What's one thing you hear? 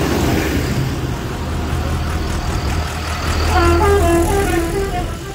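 A tractor engine rumbles loudly as it drives past.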